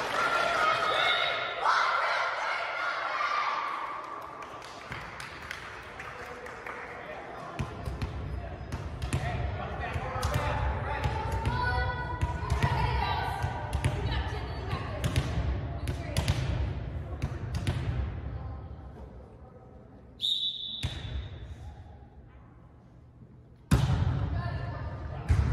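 A volleyball is hit back and forth with sharp smacks in a large echoing gym.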